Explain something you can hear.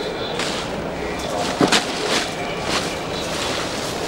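Paper crumples and rustles.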